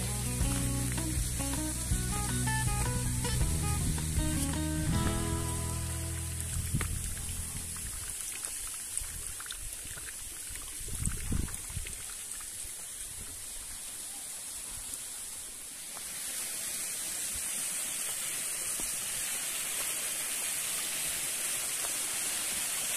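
Footsteps crunch on leaves and dirt.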